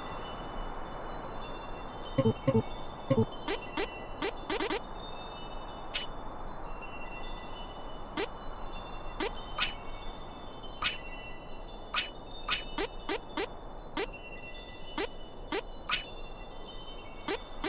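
Soft background music with sustained tones plays throughout.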